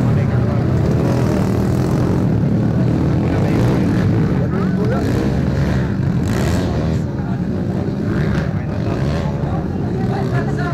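Motorcycle engines rev loudly, outdoors.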